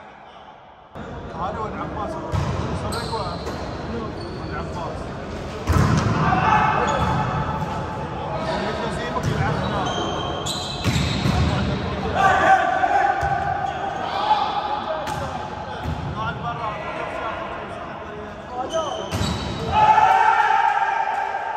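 Young men shout out to one another during play.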